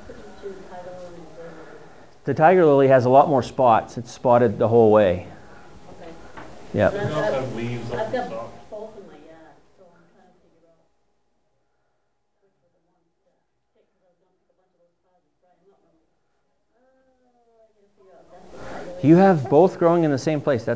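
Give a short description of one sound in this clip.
A man speaks calmly to an audience.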